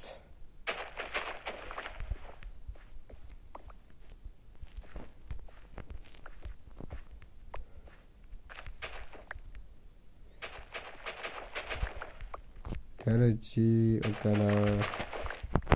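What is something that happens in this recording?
Crops rustle and pop as they are broken and harvested.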